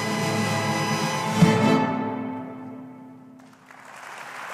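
An orchestra plays a final chord that rings out in a large hall.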